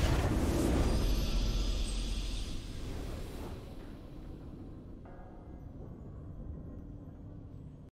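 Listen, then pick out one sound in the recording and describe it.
A triumphant fanfare swells and then fades.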